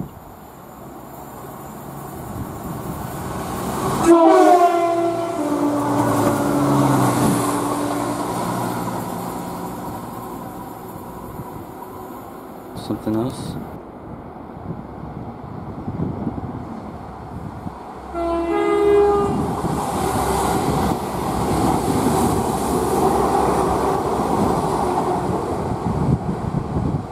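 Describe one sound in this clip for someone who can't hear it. A diesel train rumbles and clatters along the tracks.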